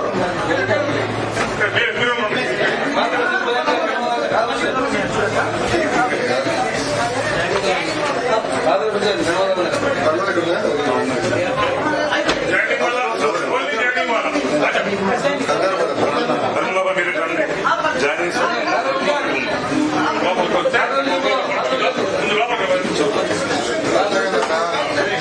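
A crowd of men talks and chatters all at once, close by.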